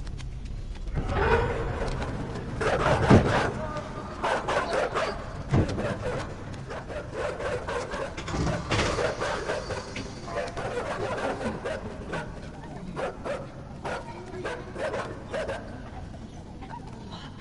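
A mass of bodies squelches and shuffles wetly across a hard floor.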